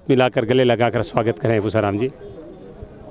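A man speaks loudly and with animation close by.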